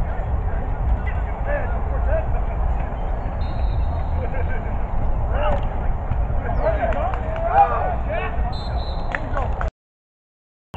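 Young men shout and call out in the distance.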